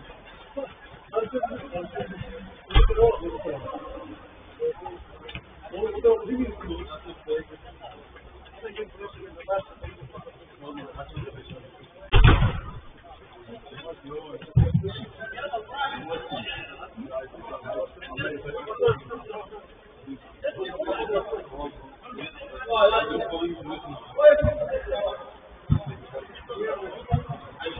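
Men shout and call out across an echoing indoor pitch.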